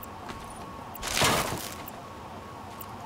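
Electricity crackles and zaps sharply.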